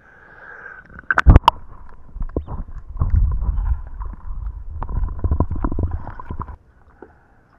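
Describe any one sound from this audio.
Water churns and gurgles loudly close by.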